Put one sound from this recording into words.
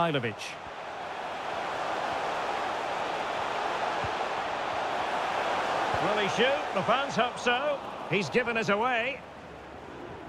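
A large crowd cheers in a stadium, swelling and then dropping away.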